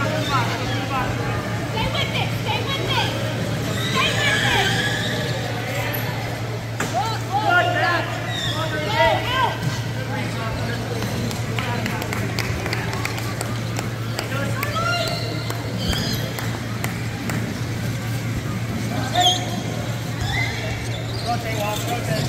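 Wheelchair tyres squeak sharply on a hard floor in a large echoing hall.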